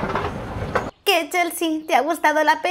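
A young woman speaks brightly and cheerfully, close up.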